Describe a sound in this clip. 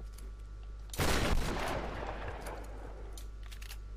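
A loud explosion bursts and rumbles away.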